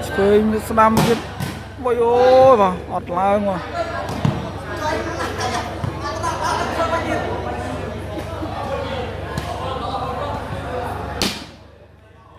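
A ball thumps as a player kicks it.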